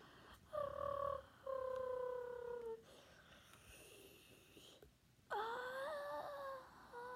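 A young boy makes playful high-pitched voice sounds close by.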